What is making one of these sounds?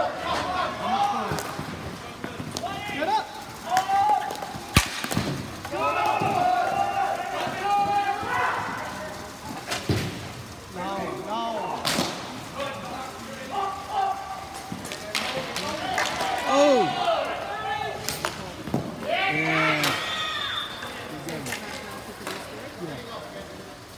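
Young players and spectators shout and cheer nearby.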